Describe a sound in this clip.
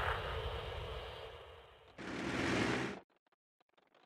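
A tank cannon fires with a heavy boom and a rolling blast.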